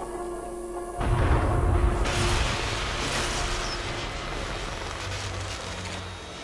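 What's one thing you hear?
Guns fire rapidly in a game with loud bursts.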